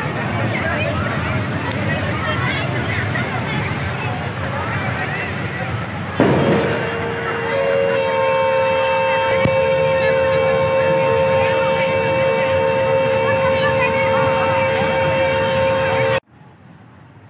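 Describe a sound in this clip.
A crowd of riders chatters and calls out.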